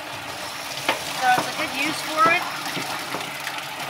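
Food scraps tumble and thud into a metal sink.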